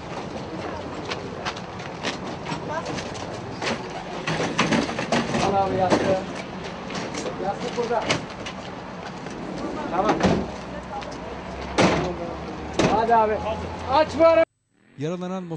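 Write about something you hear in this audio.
Men in a crowd talk and call out nearby.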